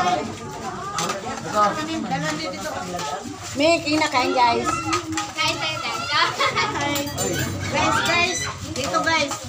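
Several men and women talk and laugh close by.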